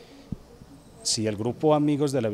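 A young man answers into a microphone.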